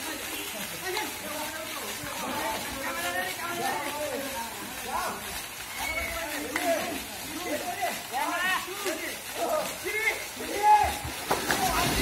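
Young men shout and cheer outdoors.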